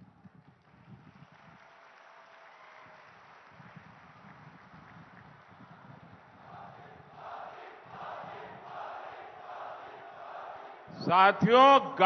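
A large crowd cheers and chants.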